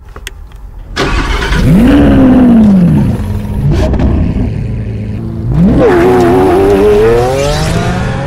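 A sports car engine revs loudly, rising and falling.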